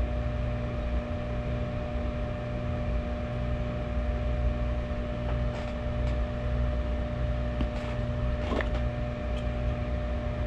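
Liquid trickles from a bottle into a cup of water.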